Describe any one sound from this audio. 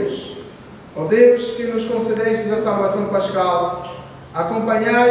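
A man chants loudly in a reverberant room.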